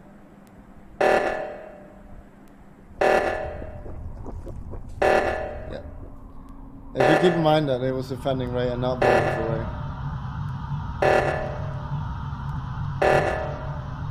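An alarm blares in short bursts, about every two seconds.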